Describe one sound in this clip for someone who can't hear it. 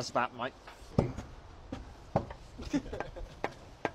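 A hammer taps against brick.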